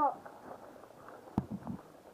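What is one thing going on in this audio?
A paintball marker fires.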